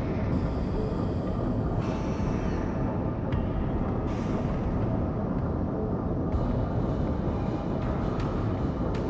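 Waves splash and rush along a ship's hull.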